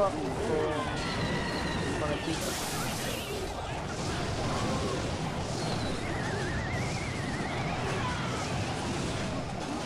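Game sound effects clash and whoosh over playful music.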